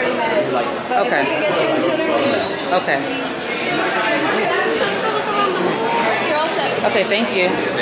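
A girl laughs nearby.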